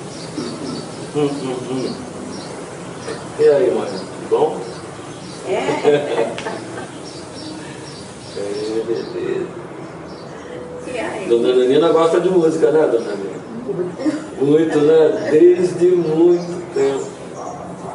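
An elderly woman sings along.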